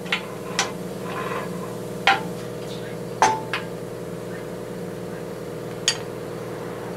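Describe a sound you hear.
Metal parts clank and knock against each other.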